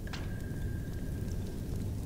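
Flames crackle nearby.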